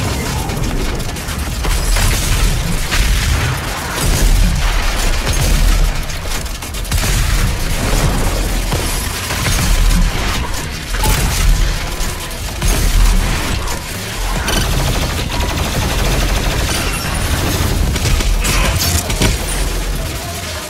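A heavy gun fires in rapid blasts.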